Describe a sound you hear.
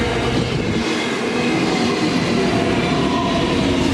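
A passenger train rushes in from the other direction.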